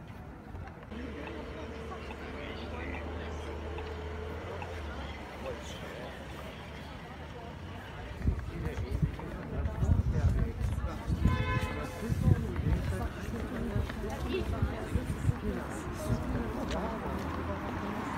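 A crowd of people murmurs nearby.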